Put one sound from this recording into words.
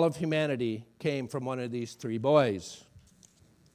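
A middle-aged man speaks with emphasis through a microphone.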